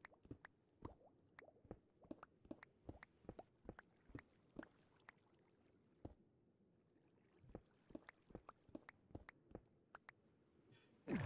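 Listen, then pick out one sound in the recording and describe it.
Blocks crack and break in quick, rapid knocks.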